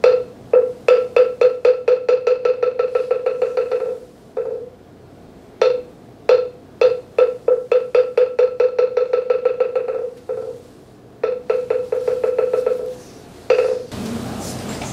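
A hollow wooden block is struck in quick, even beats that speed up and stop, again and again.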